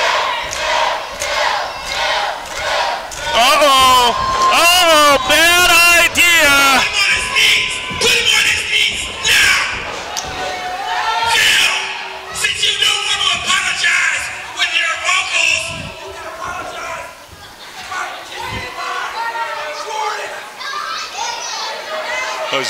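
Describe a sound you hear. A man shouts with animation through a microphone in a large echoing hall.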